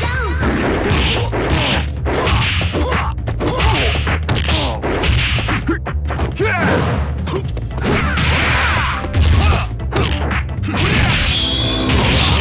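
Fast, driving music plays throughout.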